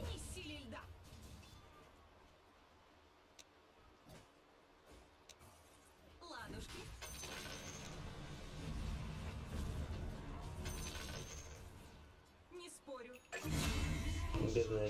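Magic spells crackle and whoosh in a fantasy battle game.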